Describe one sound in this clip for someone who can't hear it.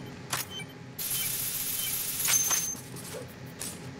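A spray can hisses loudly in bursts.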